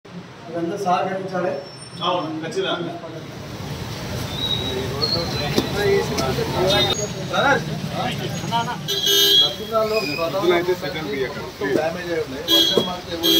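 Several men talk with each other nearby.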